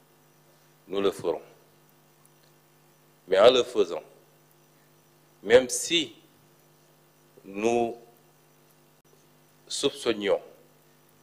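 A man speaks slowly and calmly into a microphone, in short phrases with long pauses.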